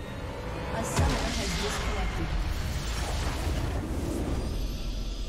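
A loud explosion booms and rumbles, then fades.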